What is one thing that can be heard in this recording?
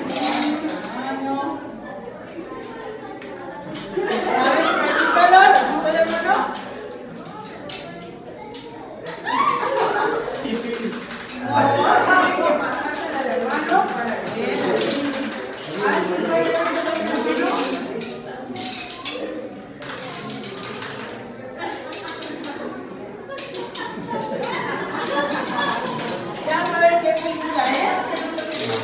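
A woman speaks with animation into a microphone, heard through a loudspeaker in a room.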